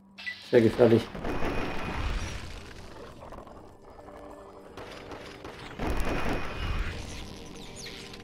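Gunfire bursts out loudly in rapid shots.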